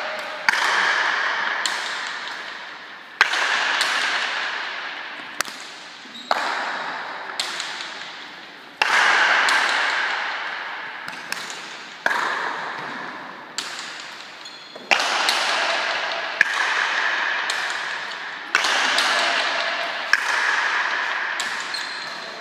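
A hard ball cracks sharply against a wall and echoes through a large hall.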